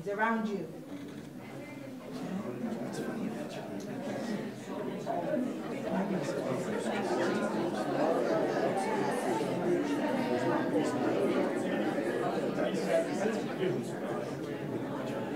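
A crowd of people murmurs and chatters softly.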